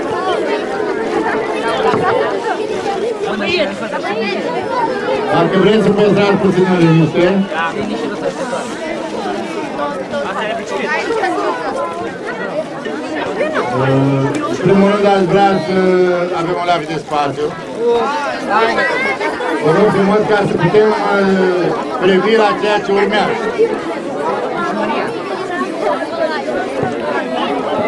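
A man speaks steadily into a microphone through a loudspeaker, outdoors.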